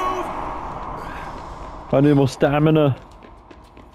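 Footsteps run on a hard floor.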